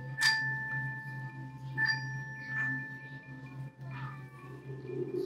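A xylophone plays a few ringing notes.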